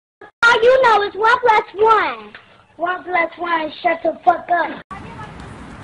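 A young child sings loudly in a high, wavering voice close by.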